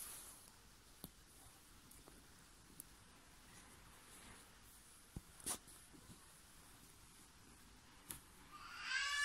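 Beads click softly against each other.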